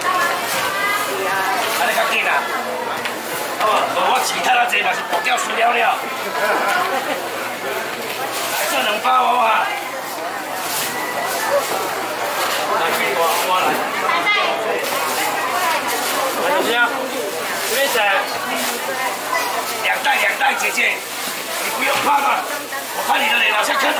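A crowd of men and women chatter all around in a busy, echoing hall.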